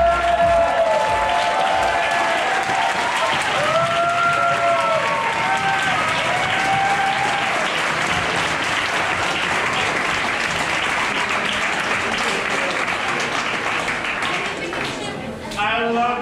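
A crowd cheers and whoops loudly in a large room.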